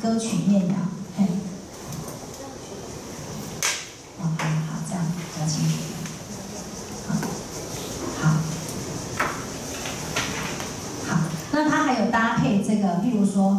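A man speaks calmly through a microphone in a room with some echo.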